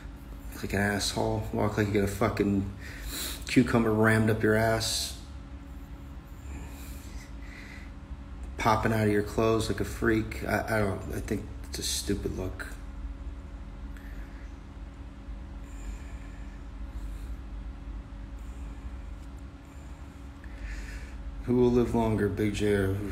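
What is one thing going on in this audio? A middle-aged man speaks calmly and slowly, close to the microphone, with long pauses.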